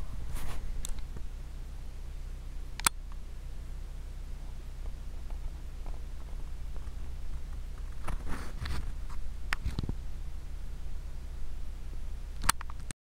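A vehicle engine hums low and steady.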